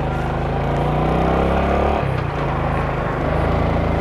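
A car passes by in the opposite direction.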